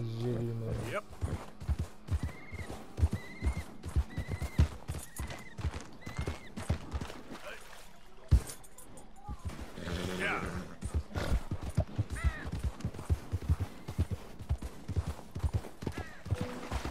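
A horse's hooves crunch steadily through snow.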